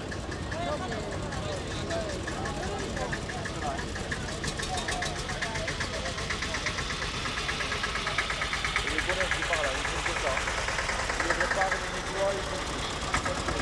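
An old tractor engine chugs steadily as it rolls past close by.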